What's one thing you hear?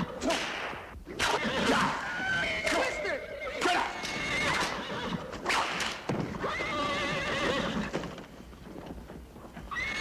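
A man grunts and shouts.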